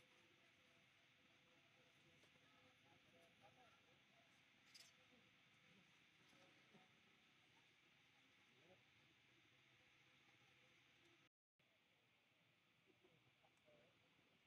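Young monkeys give short, soft squeaks.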